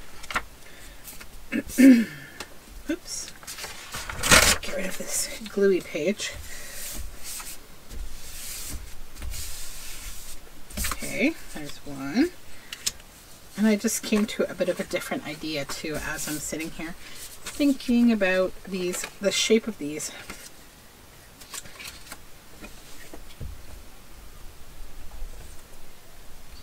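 Paper strips rustle and slide against each other.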